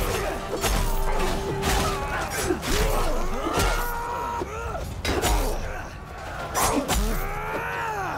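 Heavy blows thud against wooden shields.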